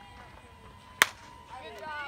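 A bat cracks sharply against a softball outdoors.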